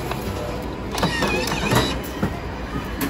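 A machine whirs as a wet tissue is dispensed.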